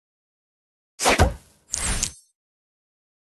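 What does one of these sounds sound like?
Sparkling game chimes burst as gems clear.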